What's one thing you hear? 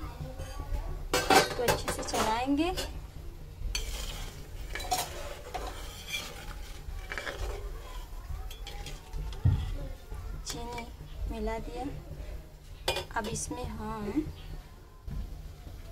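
Milk bubbles and simmers in a pot.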